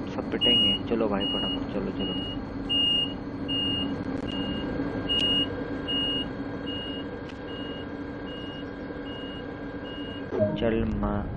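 A door warning chime beeps repeatedly at a steady pace.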